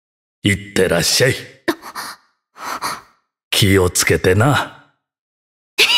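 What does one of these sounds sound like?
A young woman speaks with animation, heard close up.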